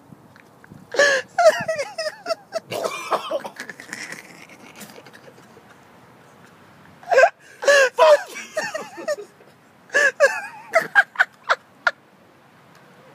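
A man coughs hard, close by.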